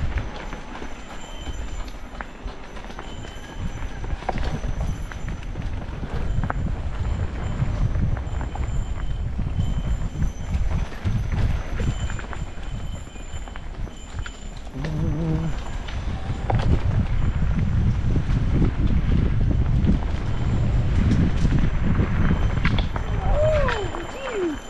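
Mountain bike tyres rumble and crunch over a dirt trail.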